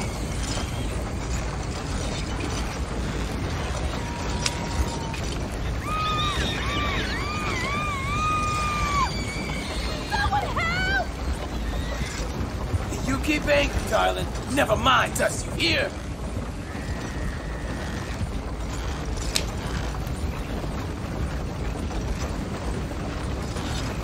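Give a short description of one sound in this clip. A wooden wagon rumbles and creaks along a dirt road.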